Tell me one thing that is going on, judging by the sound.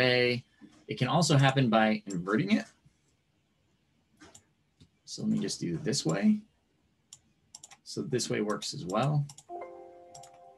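A man speaks calmly over an online call, in short bursts with pauses.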